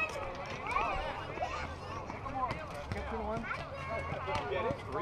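Young players shout and chatter across an open field.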